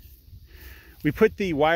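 A cow moos loudly nearby.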